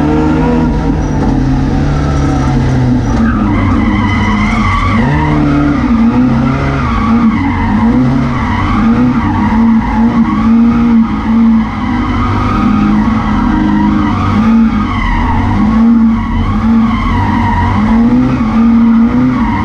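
A car engine roars loudly from close by, revving up and down as gears change.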